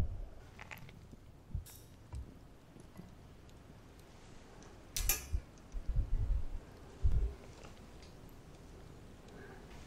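Metal skewers clink against a grill grate.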